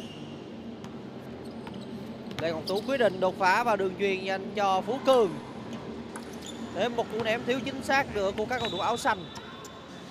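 A basketball bounces on a hard court in an echoing hall.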